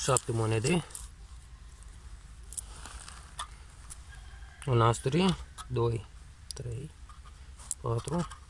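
Coins clink together in a hand.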